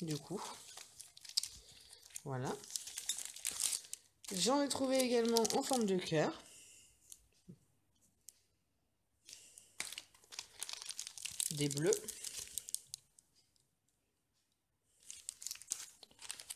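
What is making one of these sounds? Plastic sticker packets crinkle and rustle as they are handled.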